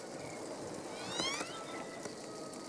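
A bird calls with quick rising whistles.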